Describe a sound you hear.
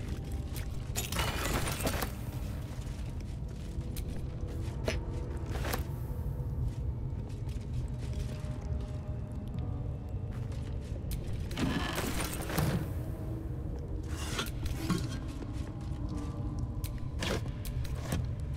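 A wooden chest lid creaks open with a rustle.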